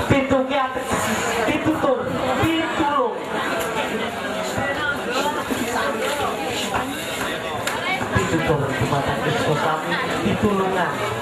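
A crowd of people talk and shout all at once nearby.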